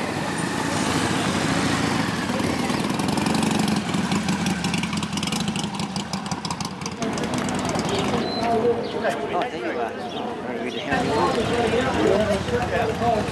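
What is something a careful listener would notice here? Motorcycle engines rumble as the bikes ride slowly past.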